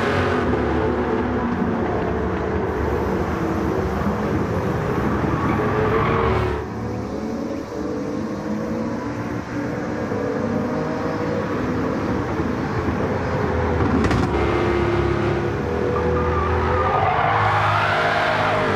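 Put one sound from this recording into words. A sports car engine roars at high revs, rising and falling in pitch as it shifts gears.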